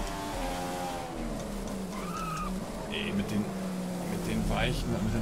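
A racing car engine drops in pitch as the car slows for a corner.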